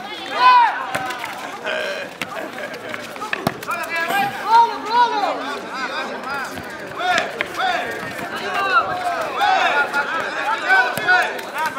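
A football thuds as it is kicked on a hard court.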